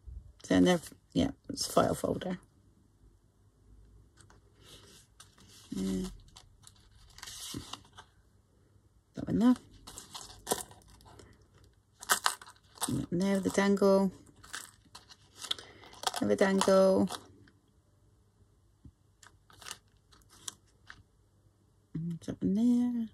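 Paper tags rustle and scrape as hands handle them.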